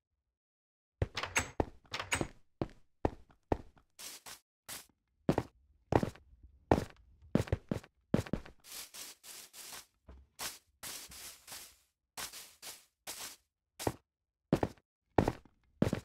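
Footsteps tread on stone and grass at a steady walking pace.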